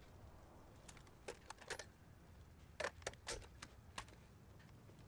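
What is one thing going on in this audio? A rifle is reloaded with sharp metallic clicks.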